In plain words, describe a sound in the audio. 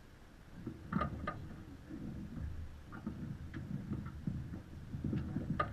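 Rigging creaks and clinks on a sailing boat.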